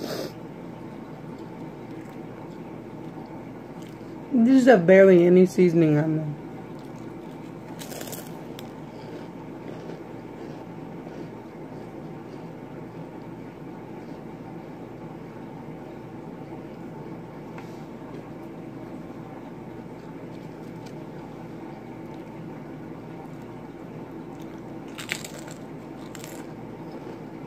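A young woman crunches crisps close by.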